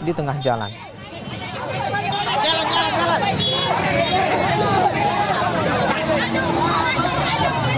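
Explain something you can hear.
A crowd of men shouts and clamours close by.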